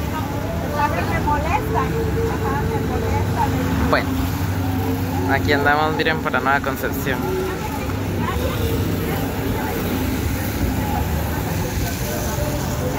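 Motorbikes and cars drive past on a street outdoors.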